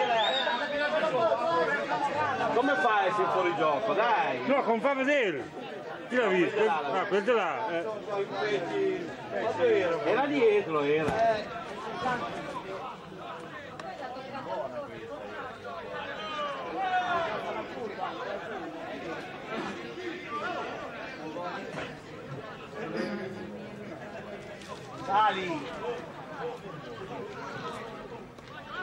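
A crowd of spectators talks and calls out outdoors.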